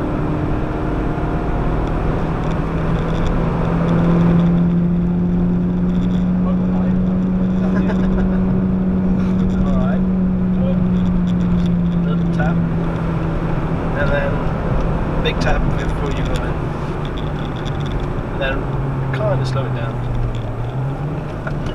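An engine drones loudly inside a car, rising and falling with speed.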